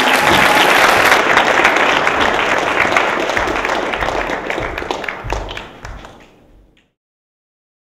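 An audience applauds in a large hall, and the clapping slowly fades away.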